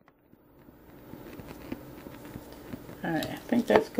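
A lighter clicks and sparks.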